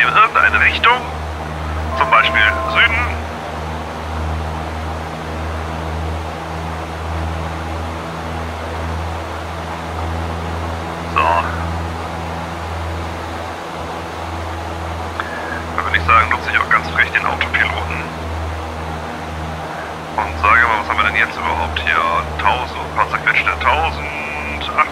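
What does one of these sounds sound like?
A small propeller engine drones steadily.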